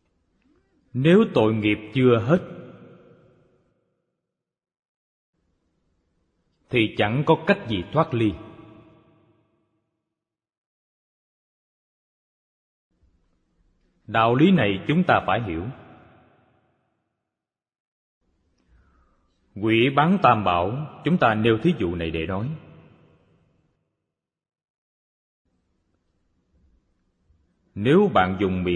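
An elderly man speaks calmly and slowly into a microphone, in short phrases with long pauses.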